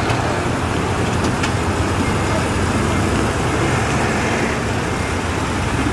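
Heavy truck engines rumble and idle loudly.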